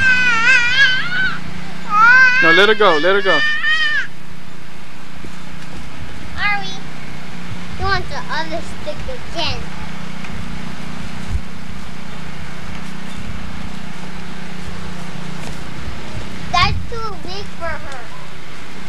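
A young child squeals and babbles close by.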